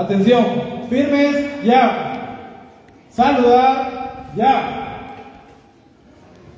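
A man calls out loudly through a loudspeaker in a large echoing hall.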